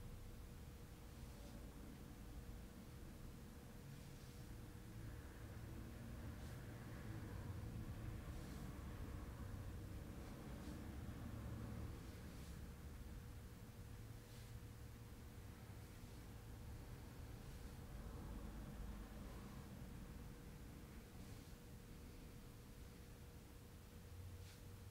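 A fist thumps rhythmically on a person's back.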